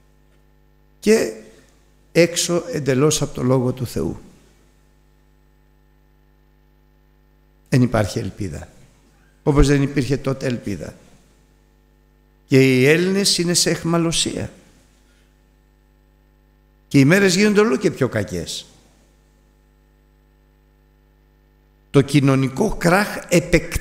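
An older man speaks with emphasis into a microphone, in bursts with pauses.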